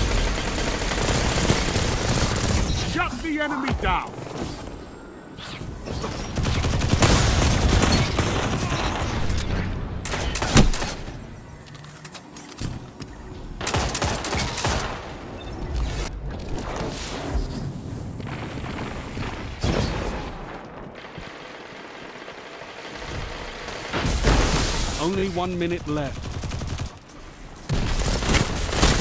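Gunfire from a game rifle rattles in bursts.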